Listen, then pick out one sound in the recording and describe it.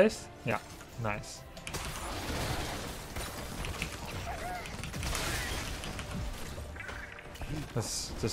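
Game battle effects crackle and boom.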